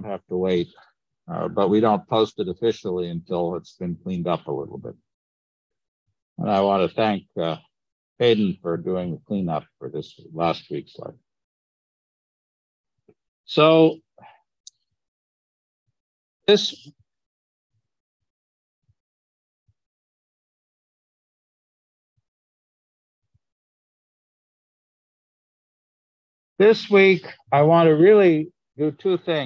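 A man speaks calmly through a microphone, in bursts with long pauses.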